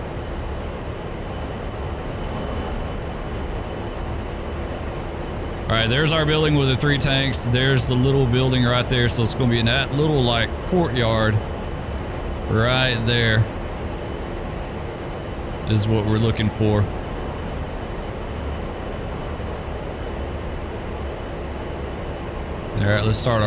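A jet engine drones steadily from inside a cockpit.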